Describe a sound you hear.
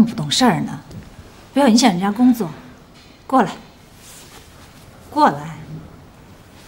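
A woman speaks sharply to a young woman.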